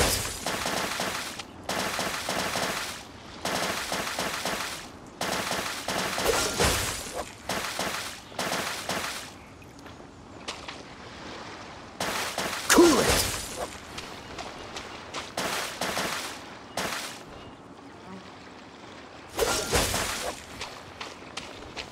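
Ice crackles and crunches underfoot.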